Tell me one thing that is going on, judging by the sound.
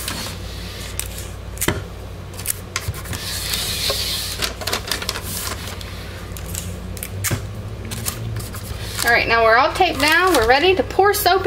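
Paper rustles and crinkles as it is pressed into a box.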